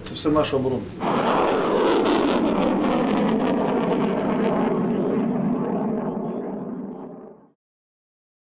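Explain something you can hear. A rocket launches with a loud roar that slowly fades away.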